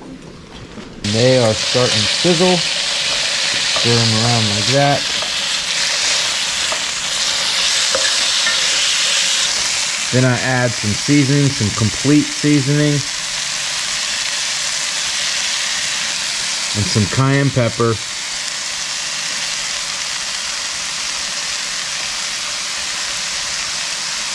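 Meat sizzles and hisses loudly in a hot frying pan.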